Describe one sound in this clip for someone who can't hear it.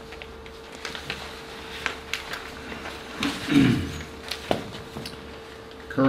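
Papers rustle and shuffle.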